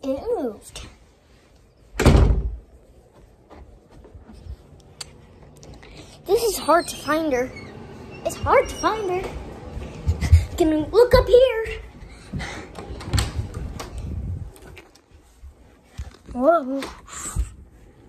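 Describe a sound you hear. A young boy sings playfully, very close.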